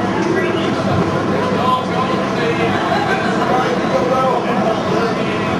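Distorted electric guitars play loudly through amplifiers.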